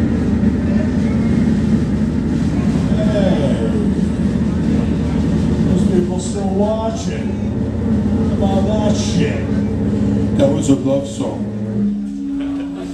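A rock band plays loudly with distorted electric guitars.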